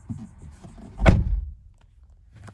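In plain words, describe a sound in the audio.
A car engine starts with a brief roar.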